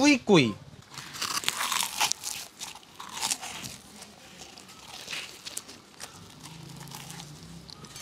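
A young man chews crunchy fried food.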